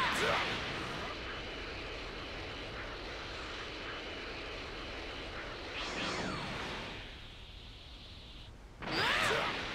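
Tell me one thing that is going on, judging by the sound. A loud rushing whoosh of fast flight streams past.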